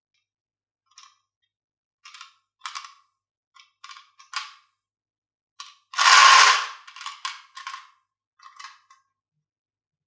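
Glass marbles rattle and clink inside a plastic jar.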